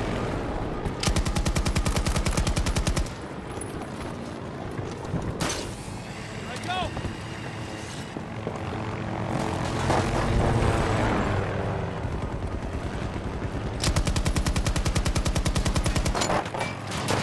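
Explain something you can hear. A machine gun fires long rapid bursts.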